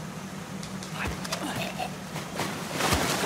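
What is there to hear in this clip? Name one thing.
Blows thud in a scuffle at close range.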